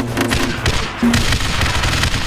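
An explosion bursts with a crackling blast.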